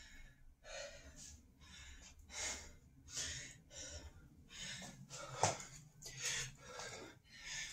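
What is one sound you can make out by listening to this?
A man breathes hard in quick, loud puffs.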